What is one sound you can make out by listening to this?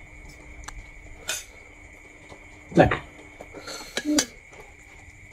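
A metal spoon clinks and scrapes against a plate.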